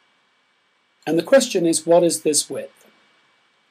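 An older man speaks calmly and closely into a microphone.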